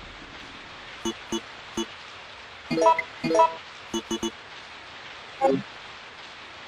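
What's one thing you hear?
Short electronic beeps sound as menu items are chosen.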